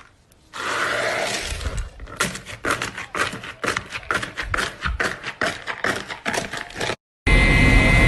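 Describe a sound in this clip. Fingers press and poke slime with crisp crackling pops.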